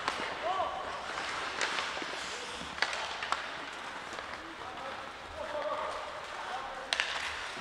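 Spectators call out in an echoing rink.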